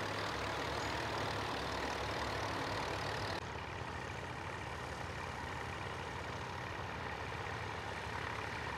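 A tractor engine chugs steadily close by.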